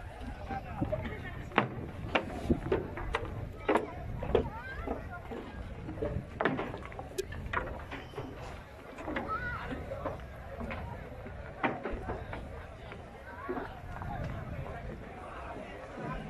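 Footsteps thud on a wooden walkway.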